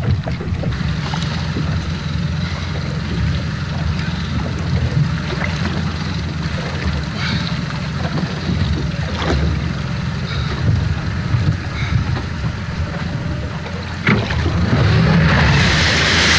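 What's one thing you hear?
A man winds a fishing reel.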